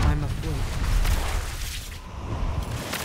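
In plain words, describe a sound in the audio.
Lightning cracks and rumbles loudly.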